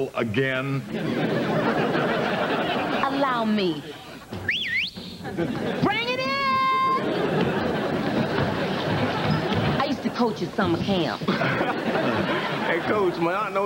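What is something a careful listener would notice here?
A studio audience laughs and cheers.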